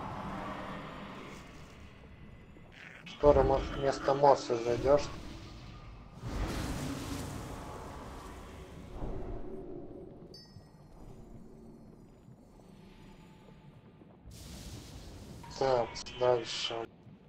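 Magic spells crackle and whoosh in a fight.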